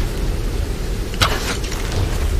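A bow twangs as an arrow is shot.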